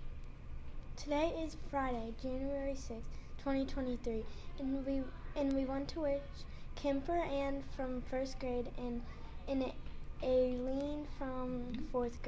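A young girl speaks calmly and closely into a microphone.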